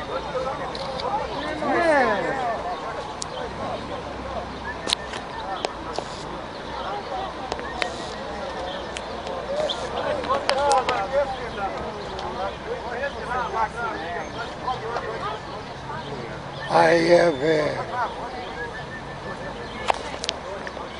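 A crowd of men and women talk and call out close by, outdoors.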